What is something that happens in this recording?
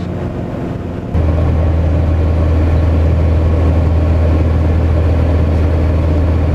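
A small propeller plane's engine drones loudly and steadily.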